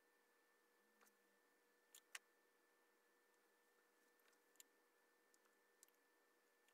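A glue gun clicks and taps against fabric.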